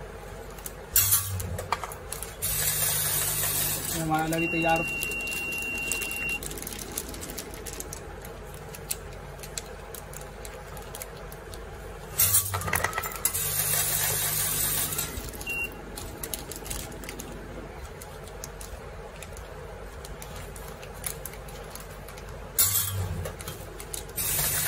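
A filling machine whirs in short bursts.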